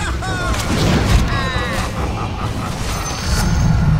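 Magic blasts crackle and zap amid a fight.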